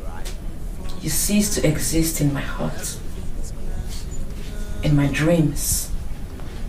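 A woman speaks quietly and close by.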